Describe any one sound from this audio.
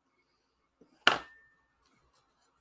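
A paper card taps and rustles on a table.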